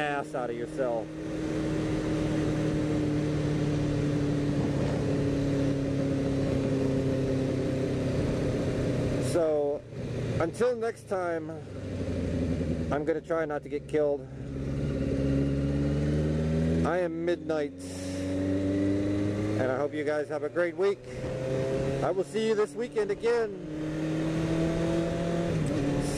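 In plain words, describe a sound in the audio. A motorcycle engine hums steadily, revving up and dropping as the gears change.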